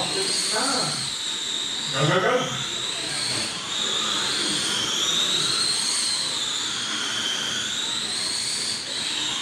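Small electric motors whine at high pitch, rising and falling as remote-control cars race around an indoor track.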